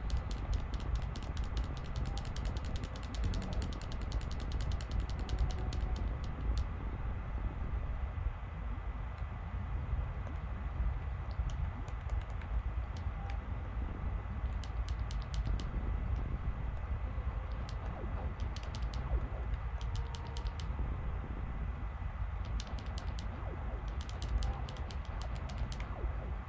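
Rapid, clicking video game sound effects come in short bursts.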